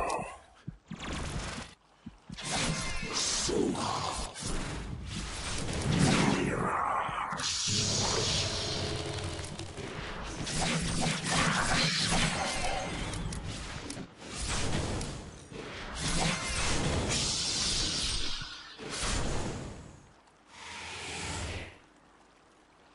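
Magic spells crackle and burst in a fantasy battle.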